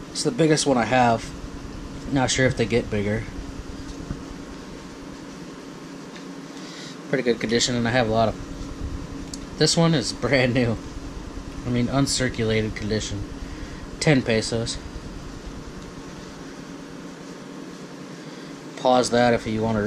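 Stiff paper notes rustle softly as a hand handles them.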